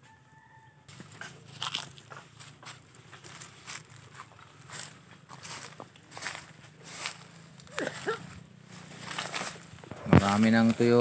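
Footsteps crunch and rustle on dry leaves.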